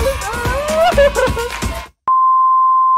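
A young man laughs softly close by.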